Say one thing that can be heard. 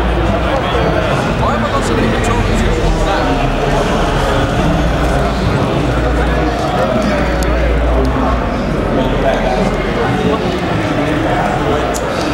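A large crowd chatters loudly all around in an echoing hall.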